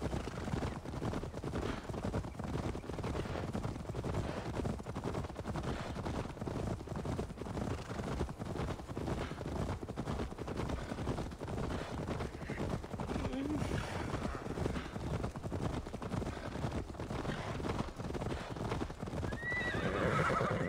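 Horses' hooves clop steadily on a dirt path.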